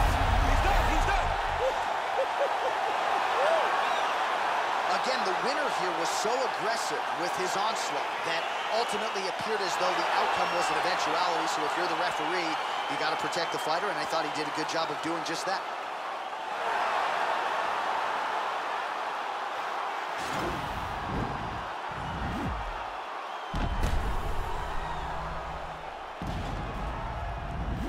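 A crowd cheers and roars in a large arena.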